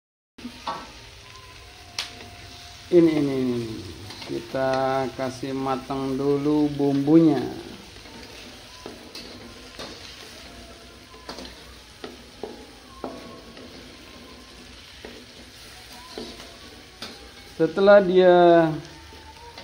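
Food sizzles in a hot wok.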